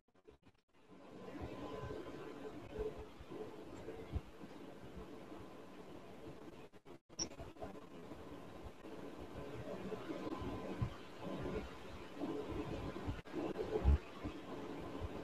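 A massage device hums faintly.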